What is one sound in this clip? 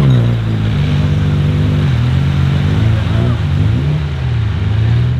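Tyres churn through mud and water.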